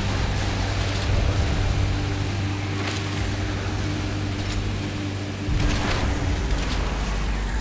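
A boat engine hums steadily while speeding over water.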